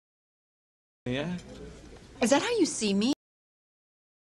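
A woman speaks in a light, amused voice.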